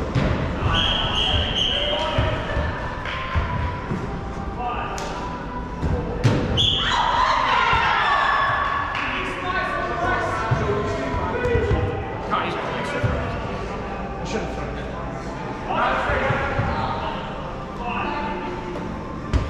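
Balls thud on the floor and smack into hands.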